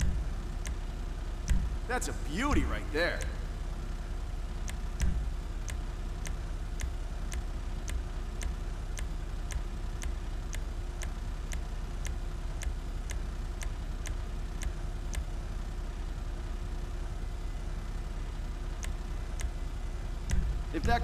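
Soft menu clicks tick at a steady pace.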